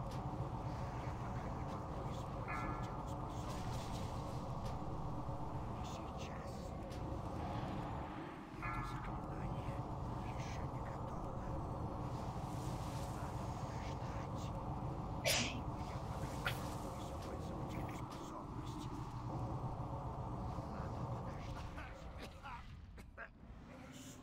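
Magic spell effects whoosh and clash.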